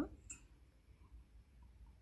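A young woman sips a drink from a mug.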